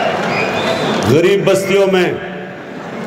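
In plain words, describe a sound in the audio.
A man speaks calmly into a microphone, heard through loudspeakers in a large hall.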